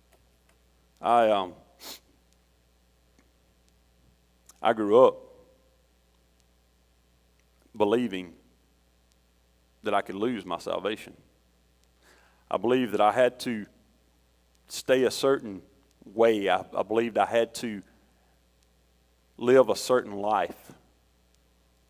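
A middle-aged man speaks calmly into a microphone in bursts, with pauses between phrases.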